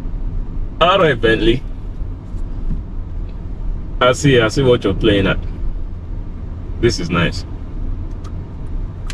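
A car engine hums low and steady inside a cabin.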